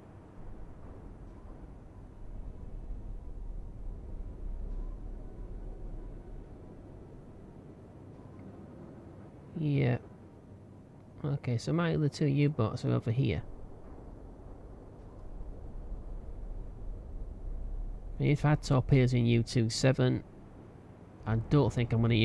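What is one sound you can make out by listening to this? Rough sea waves churn and wash steadily.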